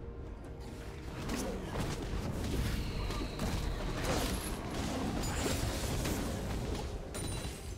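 Video game spells whoosh and crackle during a fight.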